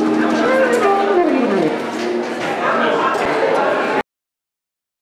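A saxophone plays a melody.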